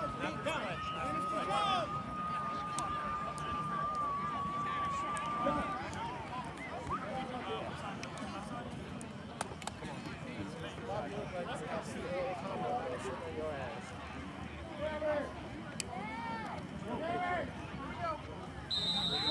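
A crowd of players and spectators chatters and calls out across an open field outdoors.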